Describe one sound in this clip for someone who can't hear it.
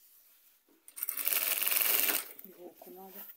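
A sewing machine runs in a quick burst.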